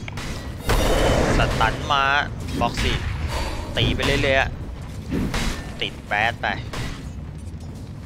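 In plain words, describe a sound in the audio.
Magic blasts and clashing hits burst out in a fast fight.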